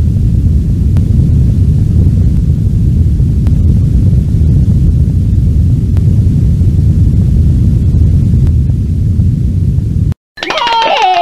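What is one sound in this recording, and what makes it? A volcano rumbles deeply and steadily.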